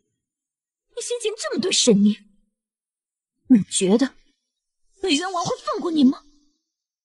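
A young woman speaks sharply and mockingly, close by.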